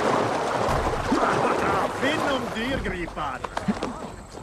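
A man grunts while climbing aboard a boat.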